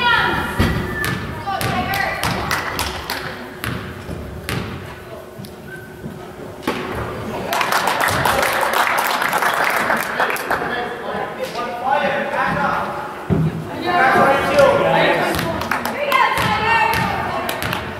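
Shoes squeak sharply on a wooden court in a large echoing gym.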